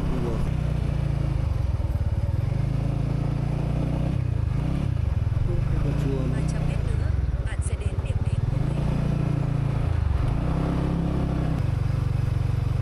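A motorcycle engine revs up and down.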